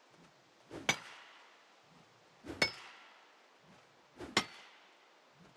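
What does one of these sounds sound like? A pickaxe strikes rock with sharp metallic clinks.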